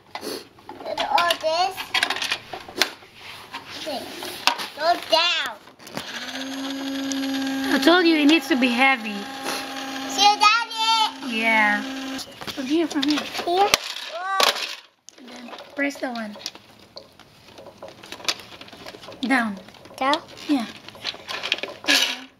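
A young child talks excitedly close by.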